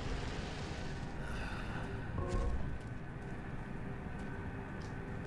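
A low mechanical hum drones steadily.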